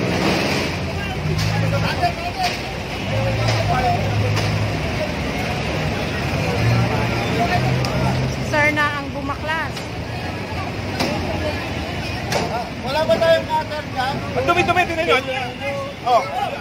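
Traffic rumbles steadily on a busy street nearby.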